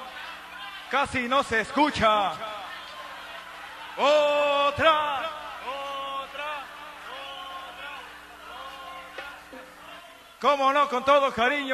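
A man sings a melody over music.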